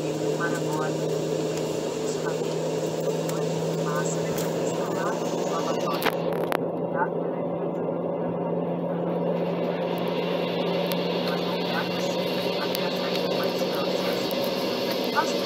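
A jet engine hums and roars steadily, heard from inside an aircraft cabin.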